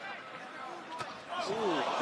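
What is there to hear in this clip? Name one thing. A punch lands with a sharp thud.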